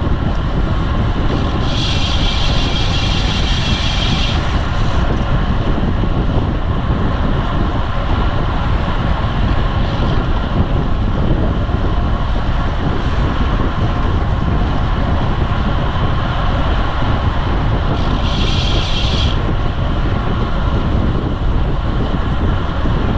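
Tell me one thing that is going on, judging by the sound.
Strong wind rushes steadily past.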